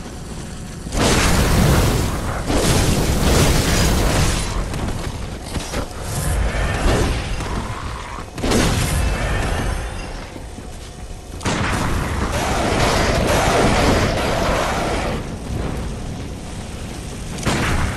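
Fire whooshes and roars in bursts.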